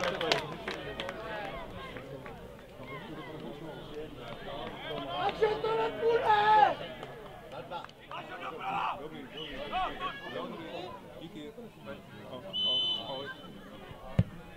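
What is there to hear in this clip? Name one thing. Players shout to each other across the field.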